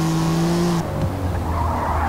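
A car exhaust pops and crackles.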